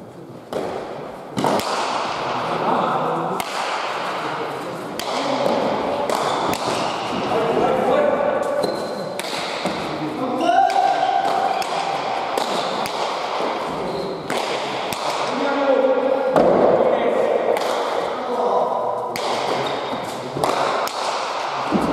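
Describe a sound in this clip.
A ball smacks hard against a wall and echoes around a large hall.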